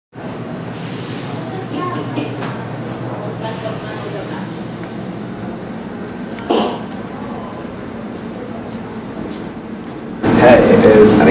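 People murmur quietly in the background.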